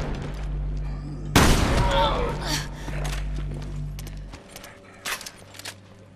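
A monster growls and groans close by.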